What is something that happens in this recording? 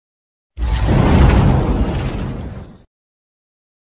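An explosion booms and roars, then fades away.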